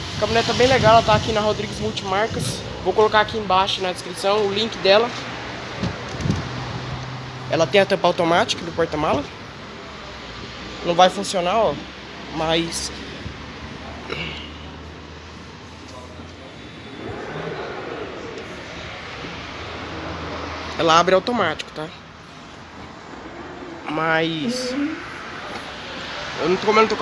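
A man talks close by in a calm, lively way.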